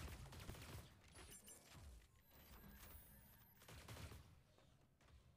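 A game character whooshes along a rail.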